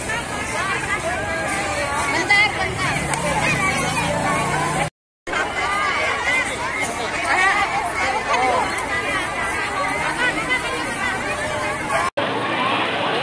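A crowd of women and children chatters loudly outdoors.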